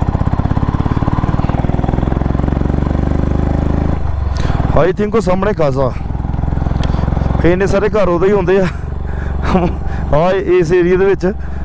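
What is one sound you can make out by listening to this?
A motorcycle engine drones steadily at a low pitch.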